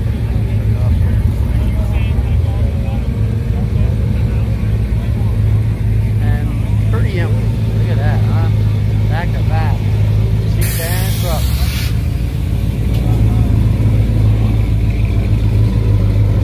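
A truck engine rumbles low and steady as it rolls slowly past.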